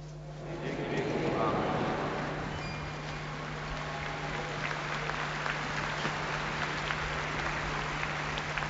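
A large crowd applauds outdoors.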